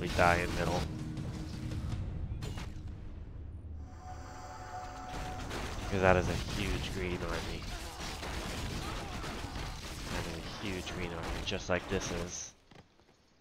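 Weapons clash and strike in a noisy battle.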